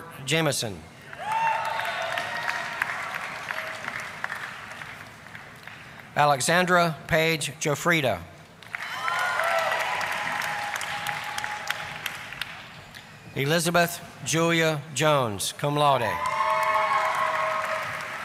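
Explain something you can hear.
An audience applauds and cheers in a large echoing hall.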